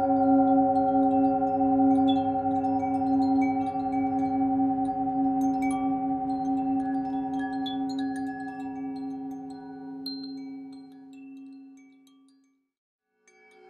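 A singing bowl hums with a steady, ringing tone that slowly fades.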